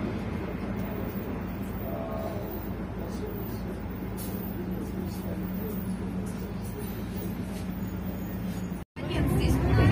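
A bus engine hums steadily from inside the bus.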